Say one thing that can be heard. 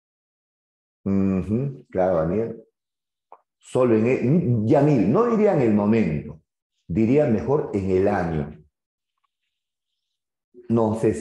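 A middle-aged man speaks calmly into a close microphone, with pauses.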